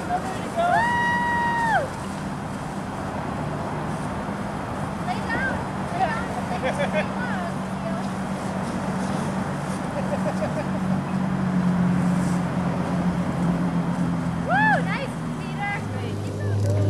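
Dry leaves rustle as children roll down a grassy slope.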